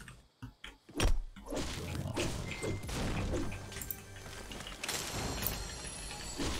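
A pickaxe strikes wood with sharp knocks.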